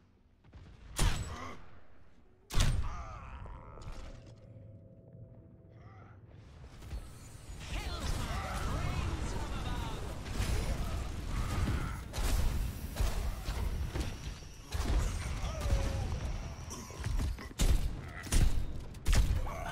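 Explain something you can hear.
Gunshots and blasts from a game ring out in bursts.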